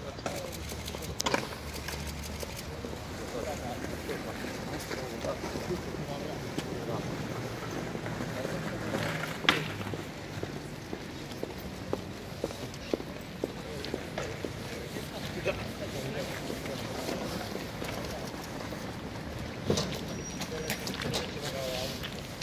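Footsteps scuff on pavement outdoors as a group walks.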